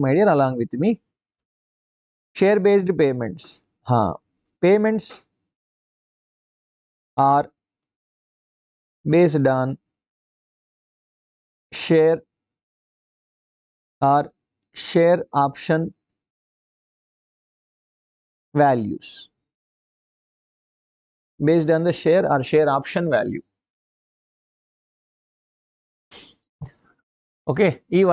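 A man speaks calmly into a close microphone, in short phrases with pauses.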